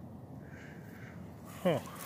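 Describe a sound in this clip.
A hand brushes through dry leaves and soil.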